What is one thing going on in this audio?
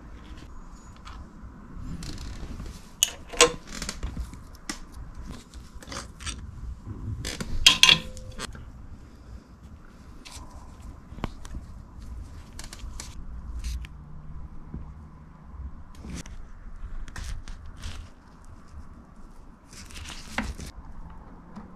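Small metal parts click and tap as fingers handle them.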